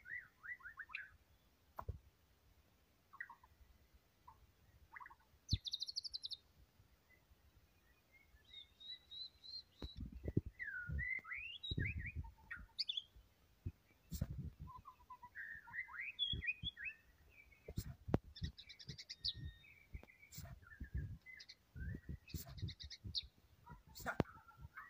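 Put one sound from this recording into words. A songbird sings close by in varied whistles, trills and chirps.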